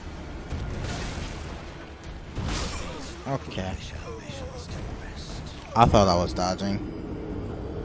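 Sword blows clash and thud in a game fight.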